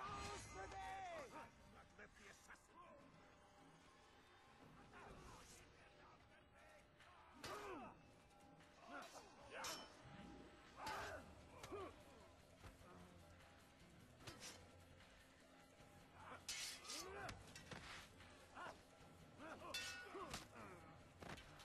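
Swords clash and ring sharply in a fight.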